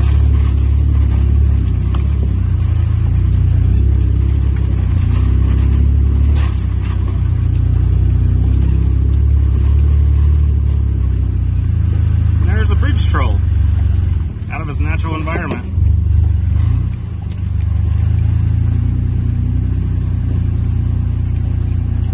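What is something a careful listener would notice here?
An off-road vehicle's engine rumbles low and steady as it crawls along.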